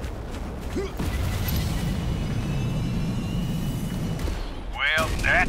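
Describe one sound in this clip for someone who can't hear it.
A jet thruster roars steadily.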